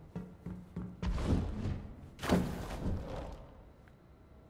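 A person scrambles and climbs onto a ledge with scuffing thuds.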